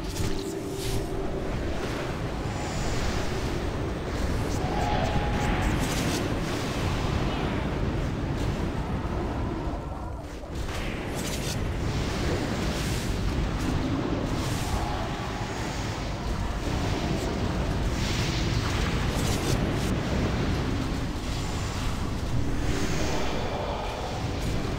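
Spells crackle and whoosh during a fight.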